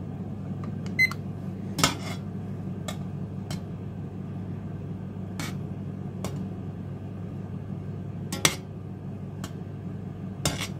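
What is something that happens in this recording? A metal skimmer clinks against the side of a pot.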